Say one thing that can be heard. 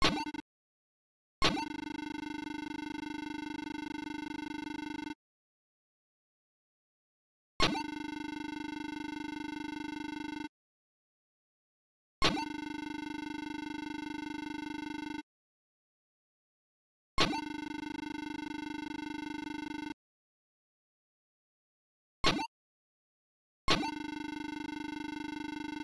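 Rapid electronic beeps chatter in bursts, pausing between them.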